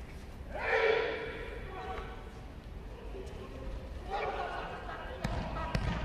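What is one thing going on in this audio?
Young men shout loudly in a large echoing hall.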